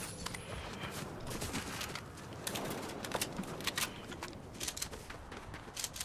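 Quick footsteps rustle through grass and leaves.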